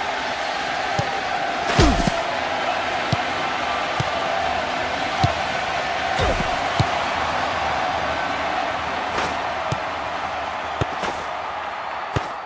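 A ball is kicked with short thuds.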